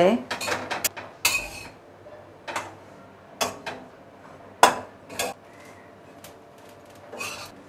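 A spatula scrapes and stirs rice in a metal pan.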